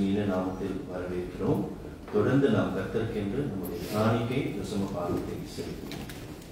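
A man speaks into a microphone over a loudspeaker in an echoing room.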